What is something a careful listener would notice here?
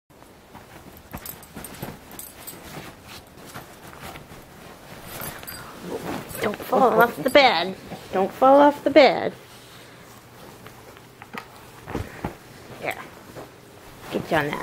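Bedding rustles as dogs tussle.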